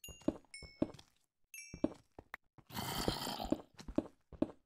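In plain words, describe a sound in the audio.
Stone blocks crumble and break with a gritty crunch.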